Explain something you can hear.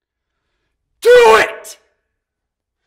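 A man shouts loudly close by.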